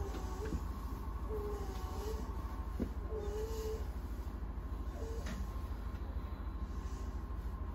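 A train idles with a low steady hum.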